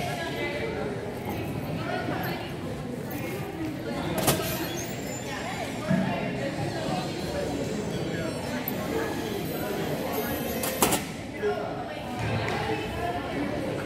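Girls and young women chatter and call out across an echoing gym.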